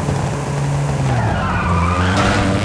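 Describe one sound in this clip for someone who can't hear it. Tyres squeal as a car takes a sharp turn.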